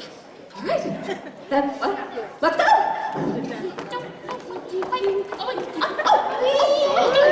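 A young woman speaks with animation in a large echoing hall.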